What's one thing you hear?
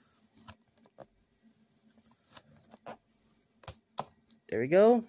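Fingers tap and scrape against a cardboard box.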